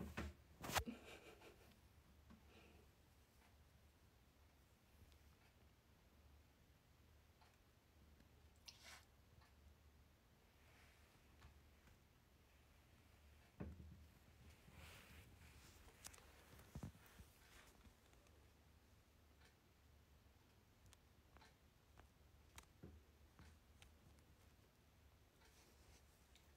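Small claws tap and scrape on a plastic toilet seat.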